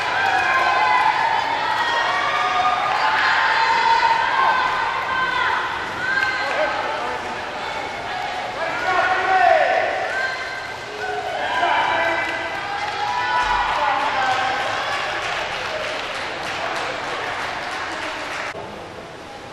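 A crowd of young people cheers and shouts in a large echoing hall.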